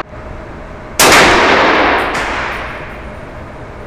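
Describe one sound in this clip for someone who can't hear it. A rifle fires a loud shot that echoes and slowly dies away.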